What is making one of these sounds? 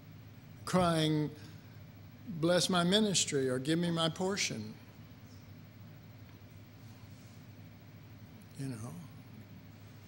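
An elderly man speaks slowly through a microphone in a large room, with long pauses.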